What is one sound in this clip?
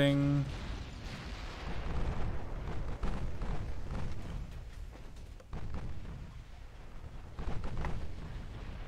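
Shells explode in the water with deep booming thuds.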